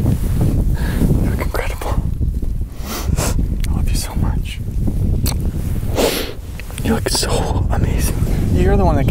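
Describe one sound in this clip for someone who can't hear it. A young woman speaks tenderly up close.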